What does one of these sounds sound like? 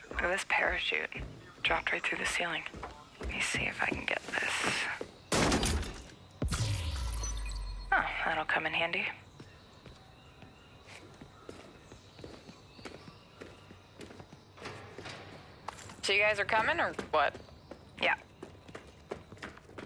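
Footsteps crunch on debris.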